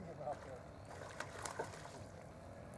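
A fish splashes at the surface of calm water.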